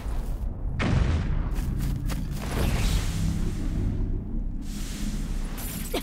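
A huge body crashes to the ground with a heavy rumble.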